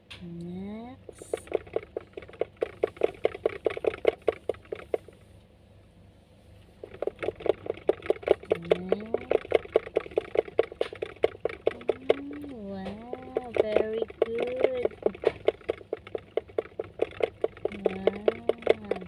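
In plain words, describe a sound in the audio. A hamster wheel rattles with fast, steady clicks.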